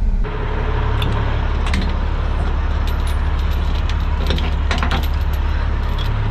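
Heavy metal chains clink and rattle.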